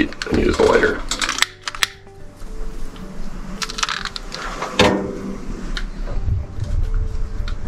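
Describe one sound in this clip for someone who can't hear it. A wood fire crackles softly.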